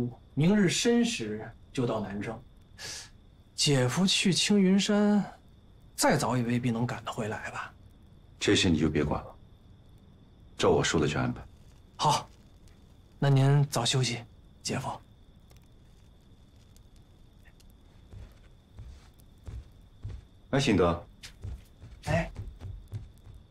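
A man speaks calmly and questioningly, close by.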